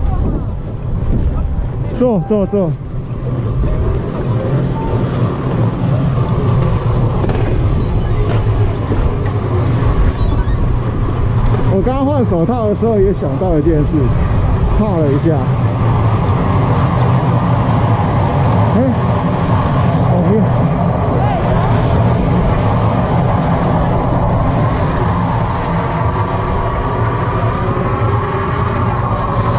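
Wind blows steadily into a microphone outdoors.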